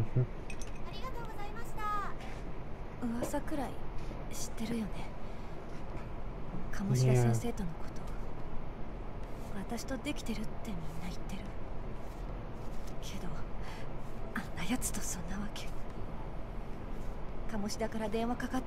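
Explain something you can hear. A young woman speaks quietly and wearily.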